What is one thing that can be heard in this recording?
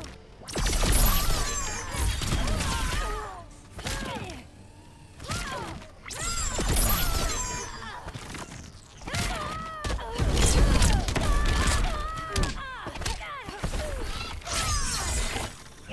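Energy blasts whoosh and crackle in a video game fight.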